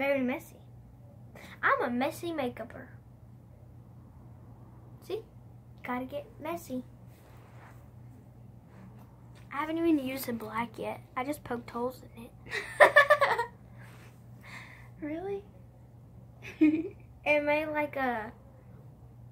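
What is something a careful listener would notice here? A second young girl talks and laughs close by.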